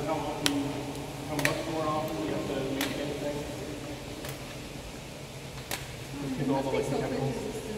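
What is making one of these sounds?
A man speaks calmly to a group in a large echoing hall.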